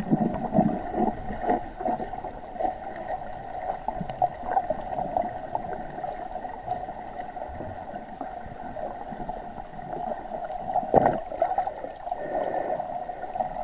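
Water swishes and crackles, heard muffled underwater.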